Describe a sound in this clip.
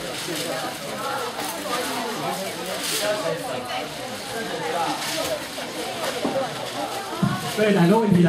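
An audience murmurs and chatters quietly.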